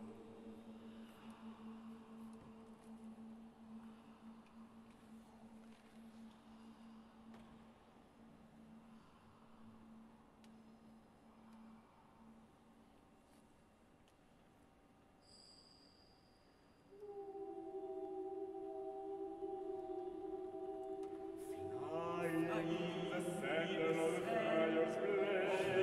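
A choir of men and women sings sustained notes in a large echoing hall.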